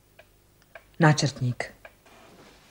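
A woman answers tensely, close by.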